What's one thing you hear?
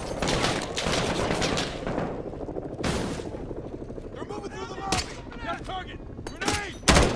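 Rifle shots crack in quick bursts, with a short echo.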